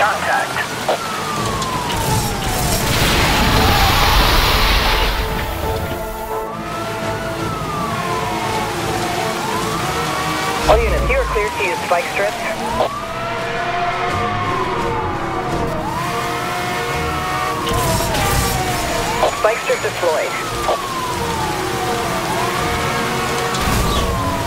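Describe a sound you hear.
A police siren wails, rising and falling over and over.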